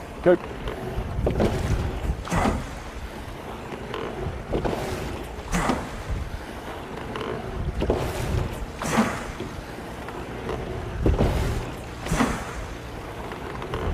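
Oars splash and swish through the water in a steady rhythm.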